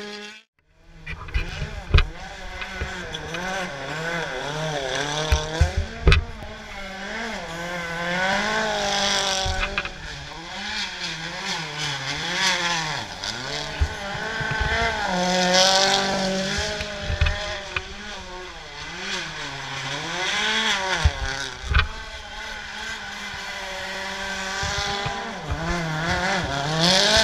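Rally car engines roar and rev up and down as the cars race past.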